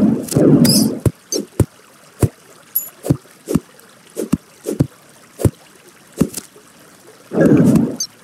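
A pickaxe chips at rock with quick, sharp taps.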